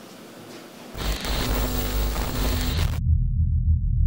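Static hisses loudly.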